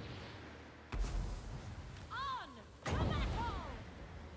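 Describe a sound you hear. Lightning crackles and booms with a heavy rumble.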